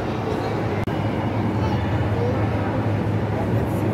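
A crowd of visitors murmurs in a large echoing hall.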